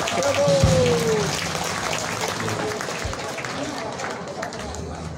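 A live band plays in a large, echoing hall.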